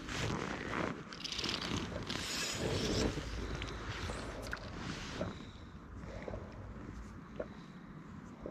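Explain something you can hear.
Wind gusts over open water and buffets the microphone, easing off after a few seconds.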